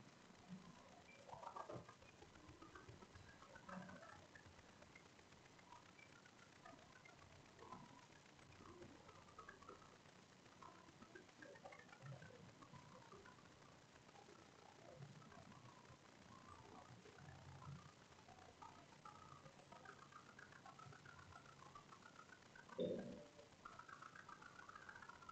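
Several adults murmur softly nearby in a quiet room.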